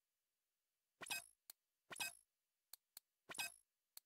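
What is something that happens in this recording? A menu makes short clicking blips in quick succession.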